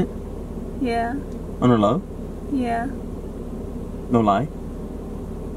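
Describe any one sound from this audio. A young woman speaks playfully close by.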